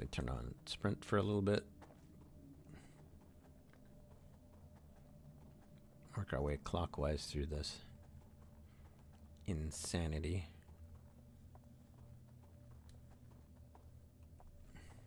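Footsteps scuff softly on stone.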